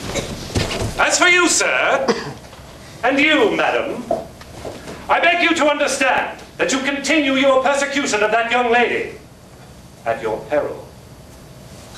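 A man speaks with feeling, a little distant and echoing.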